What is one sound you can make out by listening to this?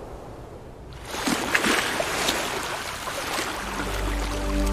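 Waves crash and surge onto rocks.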